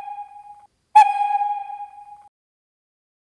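A locomotive whistle gives a short shrill toot.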